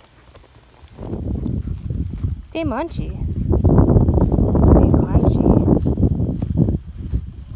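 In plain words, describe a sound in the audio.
A horse tears and crunches grass close by.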